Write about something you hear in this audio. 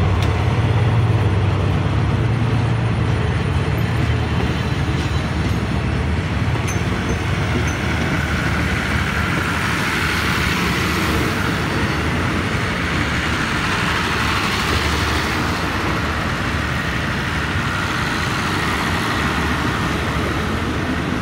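A passenger train rumbles and clatters past on the rails close by.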